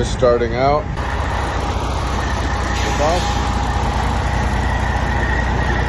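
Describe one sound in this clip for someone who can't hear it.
A bus engine idles with a low steady rumble.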